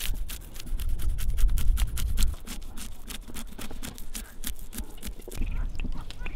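A knife rasps quickly against fish scales.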